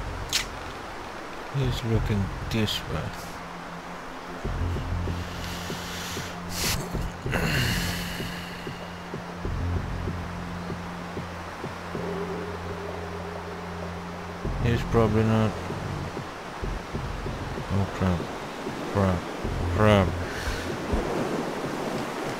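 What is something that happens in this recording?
Wind blows steadily outdoors through snowfall.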